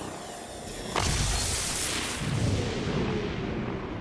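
A gunshot booms and rings out slowly.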